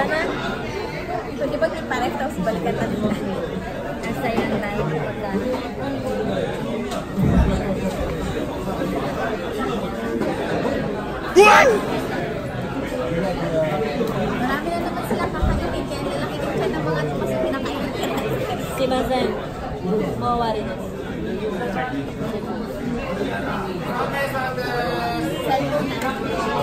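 A busy room murmurs with background chatter.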